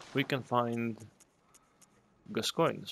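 Soft clicks tick as game menu selections change.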